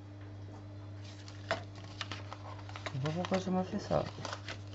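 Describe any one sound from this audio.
Stiff paper rustles and crinkles as it is folded and pressed.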